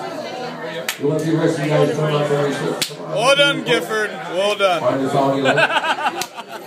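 A man talks and laughs loudly close by.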